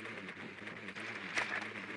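Electronic static crackles and hisses from a video game.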